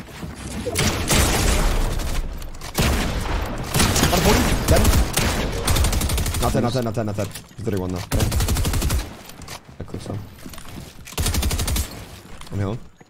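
Gunshots crack rapidly in a game.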